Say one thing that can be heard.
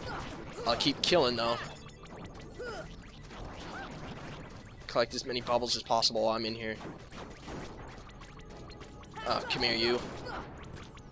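Magic spells burst and crackle in quick flurries.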